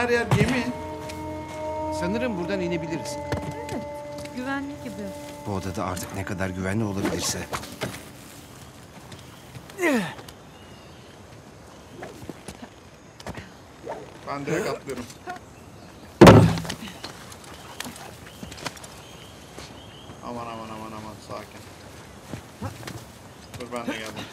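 A young man talks casually into a microphone, close by.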